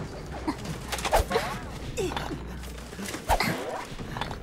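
A heavy weapon strikes with sharp thuds.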